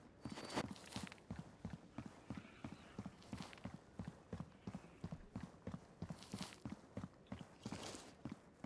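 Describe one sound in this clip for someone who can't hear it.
Footsteps tap quickly and evenly on hard ground.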